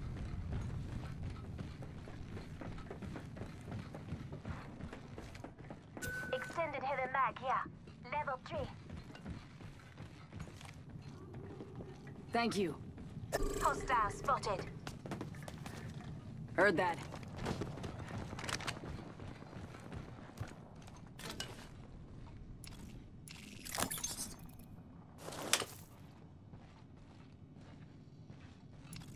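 Footsteps thud quickly on hard floors.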